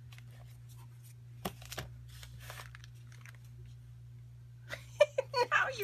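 A small canvas board knocks and scrapes lightly against a table as it is handled.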